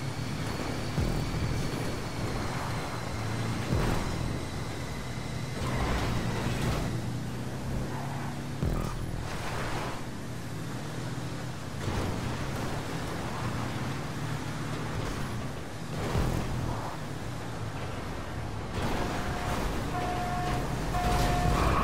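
Buggy tyres thud and crunch over bumps and landings.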